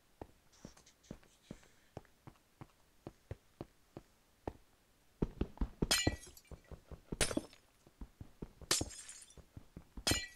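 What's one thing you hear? Footsteps tap steadily on hard stone.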